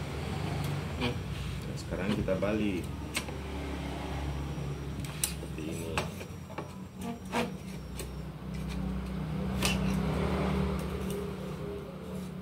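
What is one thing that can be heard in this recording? Metal parts of a knife sharpener click and clack as they are adjusted by hand.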